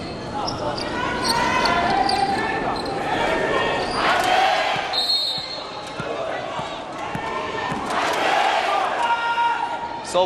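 A large crowd cheers and chants in an echoing hall.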